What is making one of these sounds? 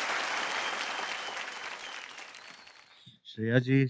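An audience applauds in a large hall and the applause fades.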